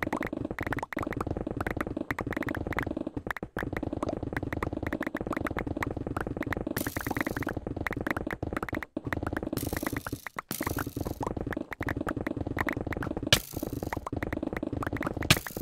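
A pickaxe chips rapidly at stone blocks, which crumble and break.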